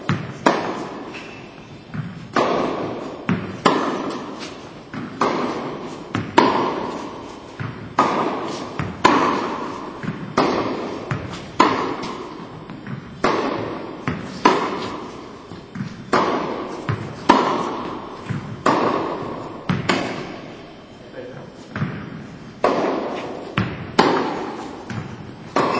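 A tennis racket strikes a ball again and again, echoing in a large hall.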